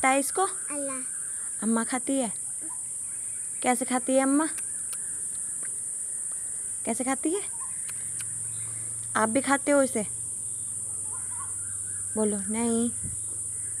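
A small child babbles and talks close by.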